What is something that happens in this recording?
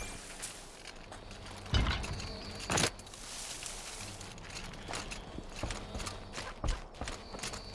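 Footsteps crunch on dirt and gravel.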